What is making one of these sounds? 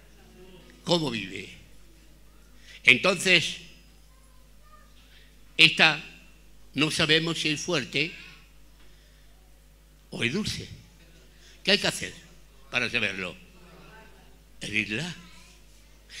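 An elderly man speaks calmly into a microphone, in short bursts with pauses.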